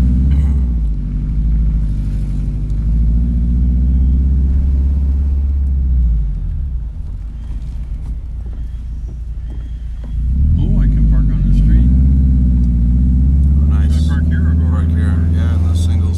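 A car engine rumbles low and steady from inside the car, quietening briefly before picking up again.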